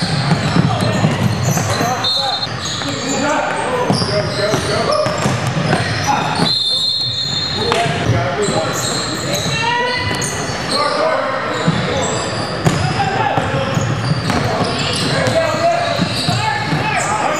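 A crowd of people chatter and shout in a large echoing gym.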